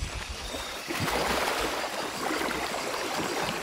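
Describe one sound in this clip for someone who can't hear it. Water splashes as a person wades through it.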